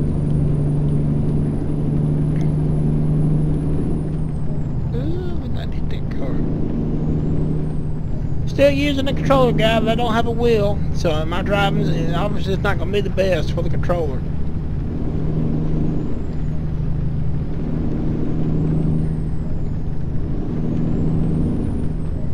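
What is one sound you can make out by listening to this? A truck engine drones steadily at low speed.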